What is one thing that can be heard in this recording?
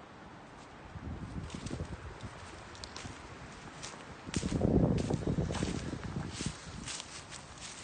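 Footsteps crunch on dry leaves and brush.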